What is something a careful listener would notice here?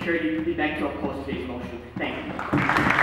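A young man speaks calmly through a microphone in a large hall.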